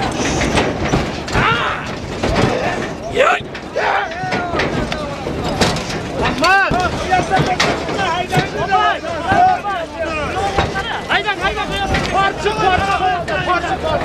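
Many men shout and call out loudly nearby.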